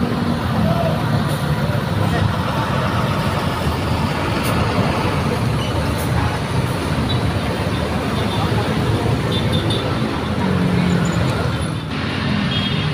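A large bus engine rumbles deeply as the bus pulls away.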